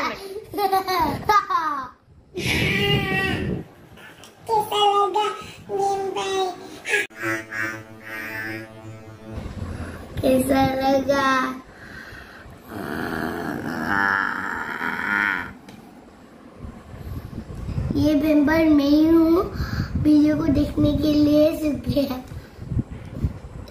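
A young boy laughs loudly.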